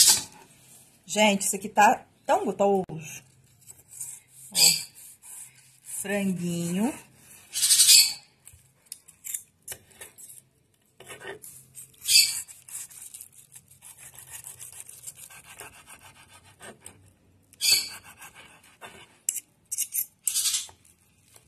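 A knife taps and scrapes against a wooden board.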